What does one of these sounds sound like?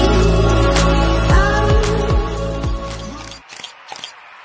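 An electric bass and an electric guitar play loudly together.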